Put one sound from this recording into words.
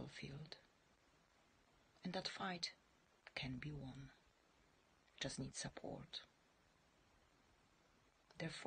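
A woman speaks softly and slowly, close by, with long pauses.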